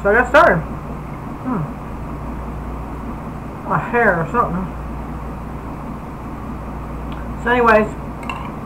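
A middle-aged woman speaks in short bursts close to a microphone.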